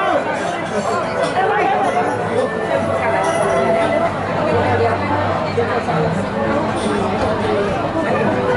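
A crowd of people murmurs and chatters in a large echoing hall.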